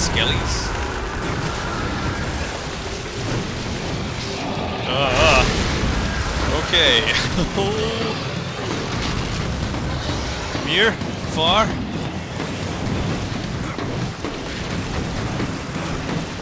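Loud rumbling combat noise fills the fight.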